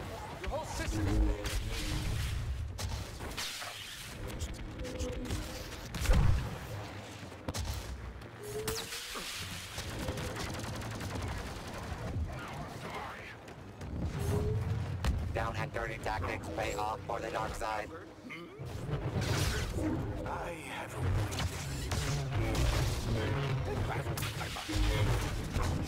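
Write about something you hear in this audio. A lightsaber hums and whooshes as it swings.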